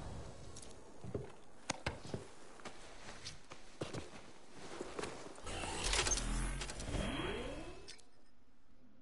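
Heavy metal armour plates clank, hiss and whir as they close.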